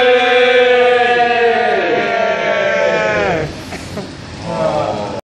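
A man sings a long, wavering chant through a microphone.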